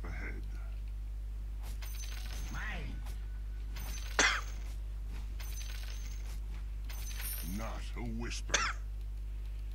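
Blades clash in a video game fight.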